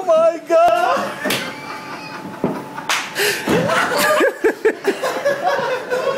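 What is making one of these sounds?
A man yelps and falls onto a hard floor.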